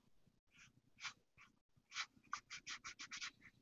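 A marker pen scratches in short strokes on paper.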